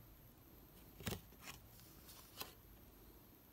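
Cards slap softly against one another.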